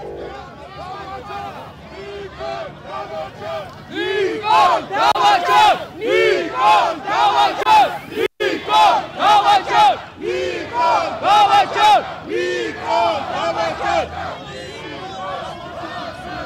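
A crowd of men shout and argue loudly up close.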